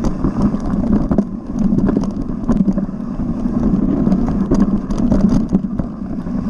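Bicycle tyres rumble and crunch over a rough dirt trail.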